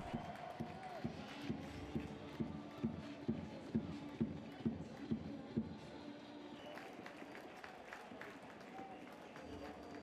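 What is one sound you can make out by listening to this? A stadium crowd cheers and chants in the open air.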